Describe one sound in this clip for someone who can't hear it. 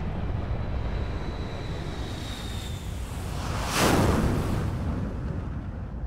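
An airship's engines roar as it flies past.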